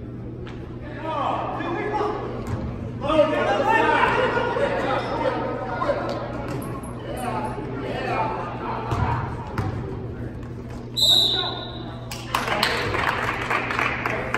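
Spectators cheer and shout in a large echoing gym.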